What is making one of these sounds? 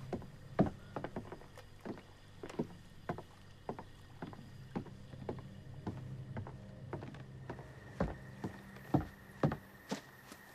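Footsteps thud on a wooden floor at a steady walking pace.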